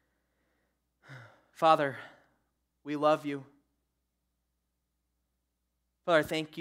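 A young man speaks calmly through a microphone, with pauses.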